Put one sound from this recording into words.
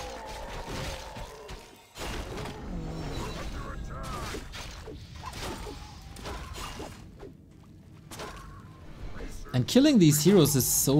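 Weapons clash and spells crackle in a game battle.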